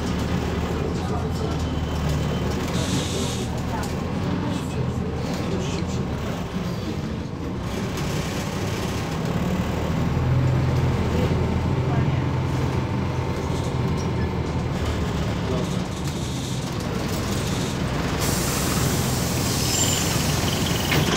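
A bus engine hums steadily while the bus drives.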